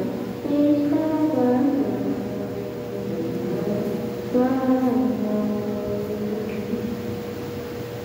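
A man sings through a loudspeaker in a large echoing hall.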